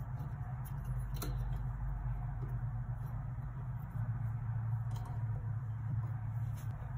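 Plastic parts click and knock softly as a microphone mount is handled close by.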